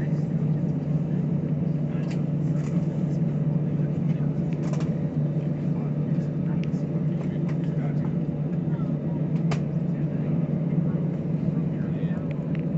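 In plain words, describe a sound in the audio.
Jet engines of an airliner roar during takeoff, heard from inside the cabin.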